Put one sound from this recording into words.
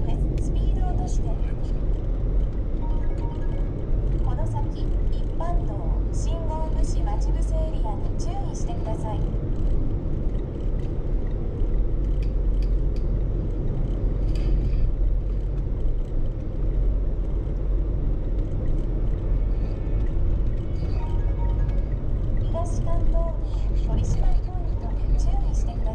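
A vehicle's engine rumbles low and steady as it drives along.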